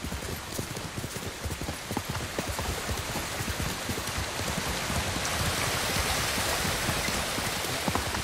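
Leaves and grass rustle and swish as a horse brushes through them.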